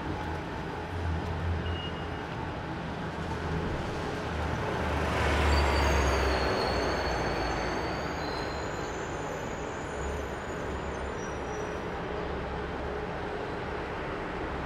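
City traffic rumbles steadily in the distance.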